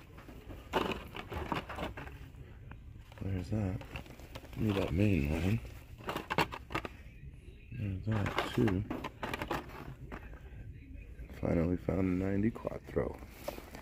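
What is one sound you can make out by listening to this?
Plastic toy packaging crinkles and clicks as it is handled.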